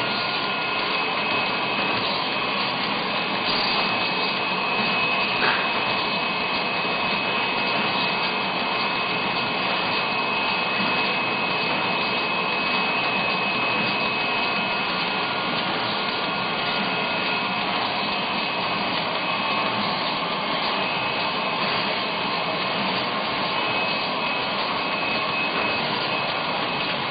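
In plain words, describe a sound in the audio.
A machine gives off a steady high whine.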